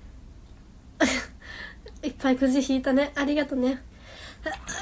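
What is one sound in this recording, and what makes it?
A young woman talks cheerfully, close to the microphone.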